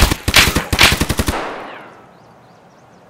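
A rifle fires a rapid burst of shots that echo and fade.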